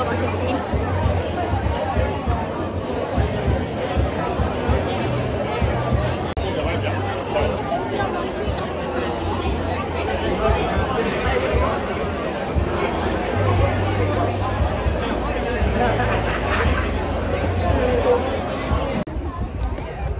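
Many people chatter and murmur nearby, outdoors.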